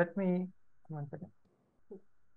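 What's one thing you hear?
A man speaks briefly over an online call.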